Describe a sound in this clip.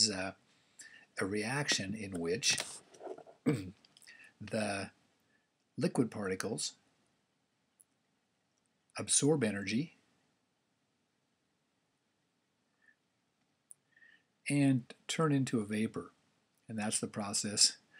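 A man speaks calmly into a close microphone, explaining in short phrases with pauses.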